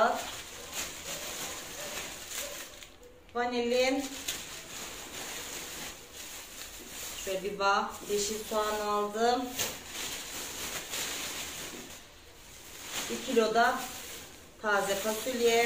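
Plastic bags rustle and crinkle.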